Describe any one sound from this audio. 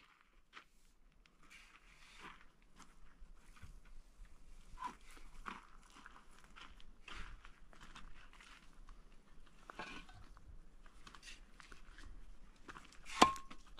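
A shovel scrapes across a concrete floor.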